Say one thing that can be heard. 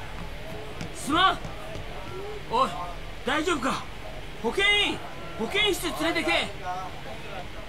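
A young man shouts with alarm nearby.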